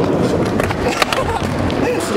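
A skateboard clatters onto a wooden floor.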